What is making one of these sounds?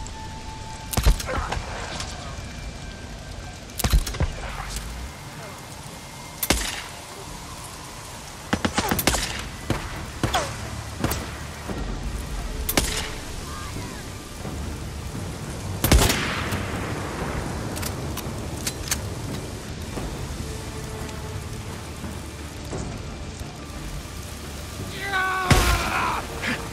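A rifle fires loud single shots, each ringing out.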